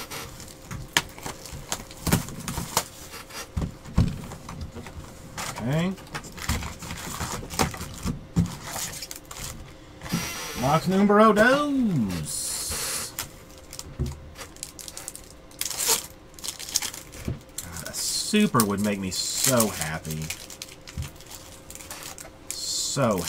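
Trading cards rustle and slap as they are handled and sorted.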